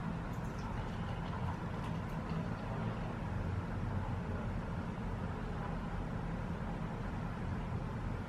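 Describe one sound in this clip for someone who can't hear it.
Beer pours from a can into a glass and fizzes.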